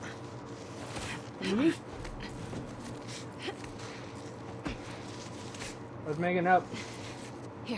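A young woman grunts with effort.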